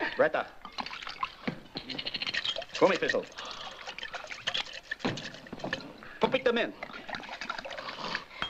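Liquid pours from a bottle into a metal cup.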